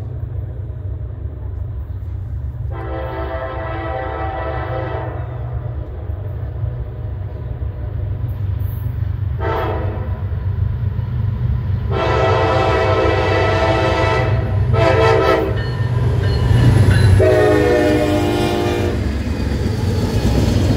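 A locomotive engine rumbles loudly as the train approaches and passes.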